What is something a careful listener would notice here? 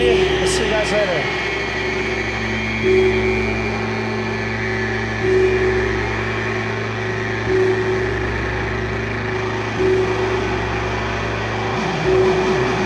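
A live band plays music loudly in a large hall.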